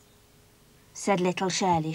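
A young girl speaks brightly, close by.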